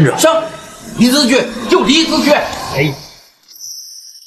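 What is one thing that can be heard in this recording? An elderly man speaks firmly close by.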